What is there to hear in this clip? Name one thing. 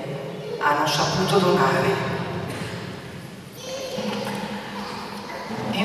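A man announces through a microphone in a large echoing hall.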